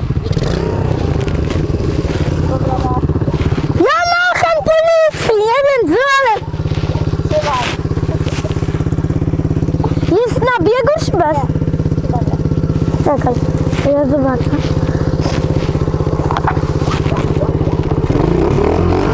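A motorbike engine idles with a steady, close rumble.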